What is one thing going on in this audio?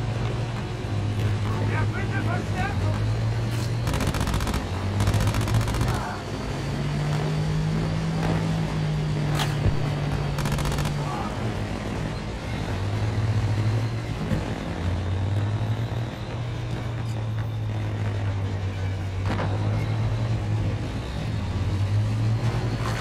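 A tank engine rumbles steadily, loud and close.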